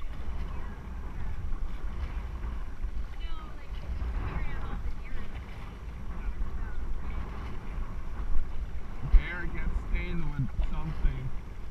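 Paddles splash and dip into the water.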